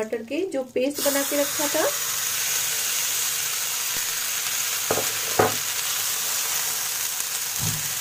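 A wet paste hisses and sizzles loudly as it drops into hot oil.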